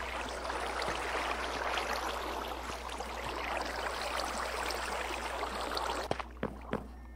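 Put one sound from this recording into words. Water splashes and swirls steadily.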